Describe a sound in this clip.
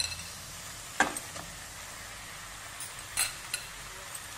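Raw minced meat drops into a sizzling pan with a soft thud.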